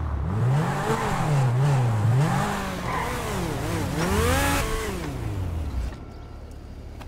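A sports car engine revs up and down loudly.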